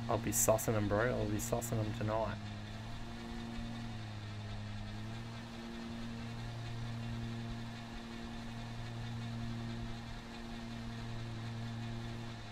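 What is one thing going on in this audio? A small motor engine hums steadily.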